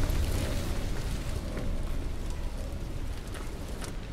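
A fire roars and crackles close by.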